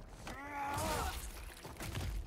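A woman screams in pain.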